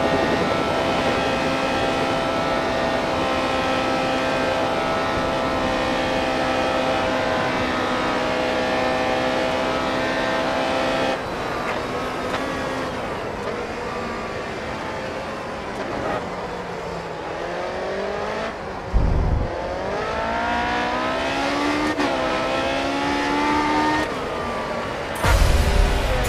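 A racing car engine screams at high speed, then drops in pitch as the car brakes and revs up again through the gears.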